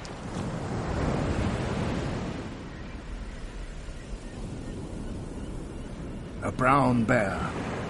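Waves wash softly on a shore nearby.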